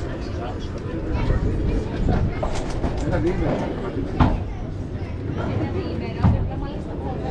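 A padel ball is struck sharply with a paddle, again and again.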